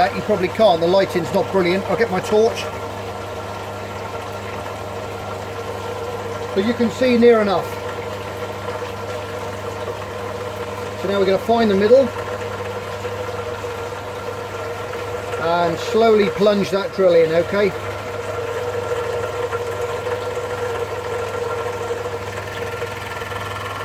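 An aquarium pump hums steadily.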